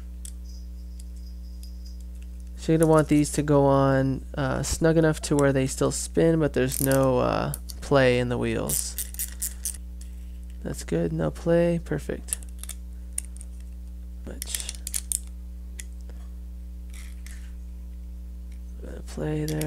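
Small metal parts click and clink together.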